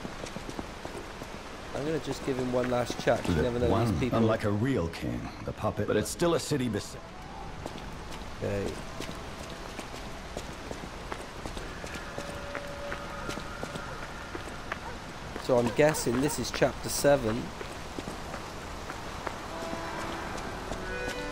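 Footsteps run across stone paving.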